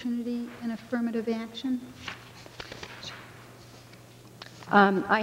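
A woman speaks calmly through a microphone in a large, echoing room.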